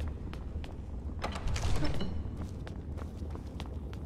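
A heavy iron door creaks and swings open.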